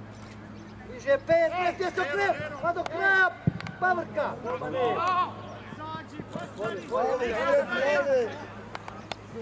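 Men shout across an open sports field.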